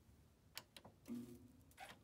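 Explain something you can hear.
A finger presses a computer's power button with a soft click.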